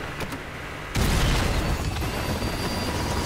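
A helicopter blows up with a loud, booming explosion.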